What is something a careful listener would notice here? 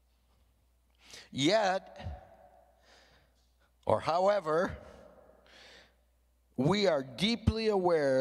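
An older man speaks with animation into a microphone, in bursts with pauses.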